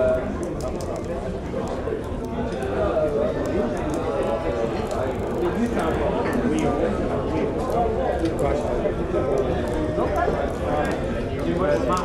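A crowd of men and women chatter and laugh indoors.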